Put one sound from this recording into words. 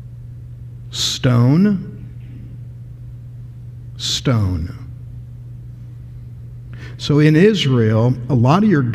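A man speaks with animation through a microphone, in short bursts with pauses.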